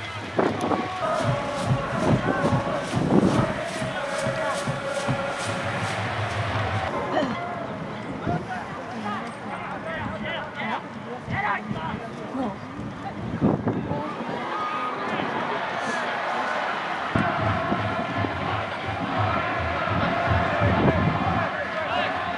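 Young men shout and call out to each other across an open outdoor field.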